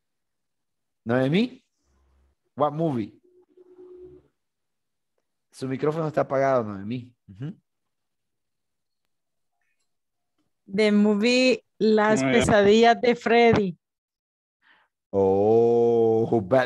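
A young man speaks through an online call.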